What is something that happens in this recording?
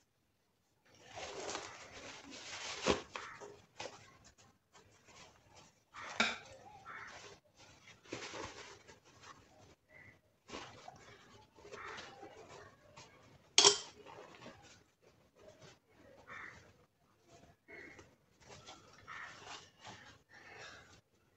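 Cloth rustles and crinkles as hands handle it.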